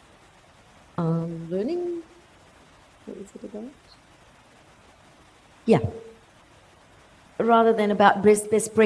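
A woman speaks through a microphone with pauses, her voice amplified in a room.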